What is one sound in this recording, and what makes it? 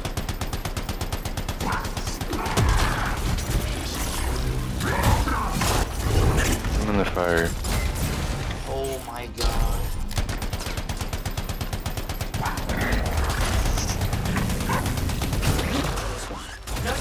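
Rapid gunfire rattles throughout.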